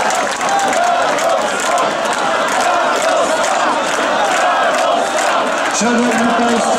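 A large outdoor crowd chants and cheers loudly.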